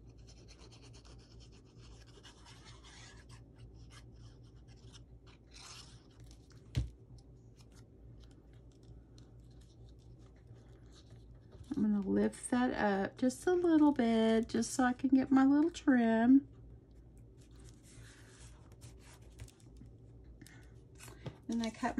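Paper rustles and scrapes softly as it is handled.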